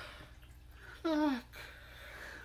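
A woman laughs out loud close by.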